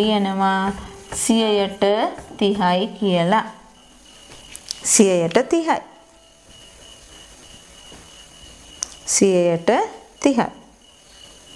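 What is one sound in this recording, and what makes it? A woman speaks calmly and clearly, as if explaining, close to a microphone.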